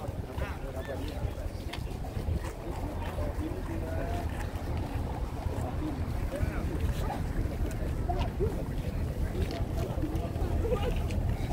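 Many voices of a crowd murmur nearby outdoors.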